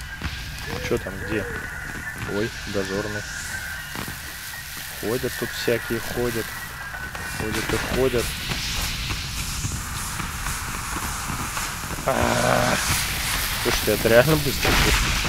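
Footsteps tread on snowy stone.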